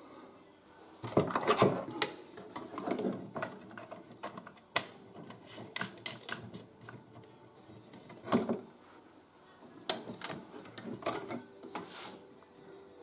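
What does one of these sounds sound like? Small plastic and metal parts click and knock as they are handled.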